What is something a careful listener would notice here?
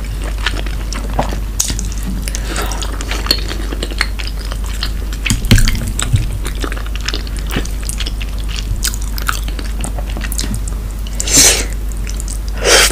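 A woman chews and slurps food wetly, close to a microphone.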